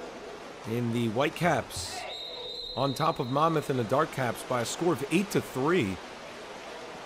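Young players shout loudly across the water.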